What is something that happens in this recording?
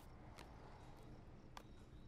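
A woman bites and crunches on a snack.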